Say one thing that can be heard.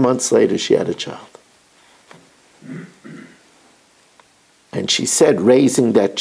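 An elderly man speaks calmly and close by, with pauses.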